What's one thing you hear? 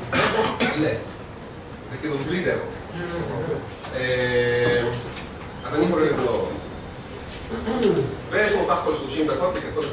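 A man speaks to an audience through a microphone in a room with some echo.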